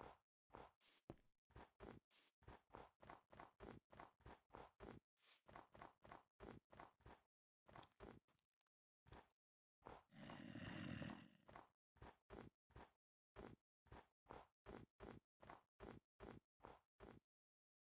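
Footsteps crunch on snow at a quick, steady pace.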